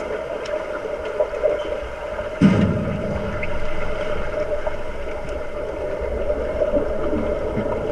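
Air bubbles rush and gurgle underwater.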